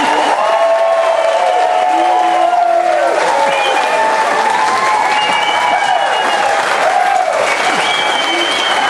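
A live band plays lively music with horns.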